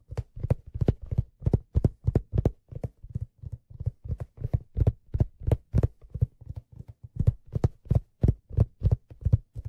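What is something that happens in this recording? A man beats a hand drum with fast, steady, deep thumps close to a microphone.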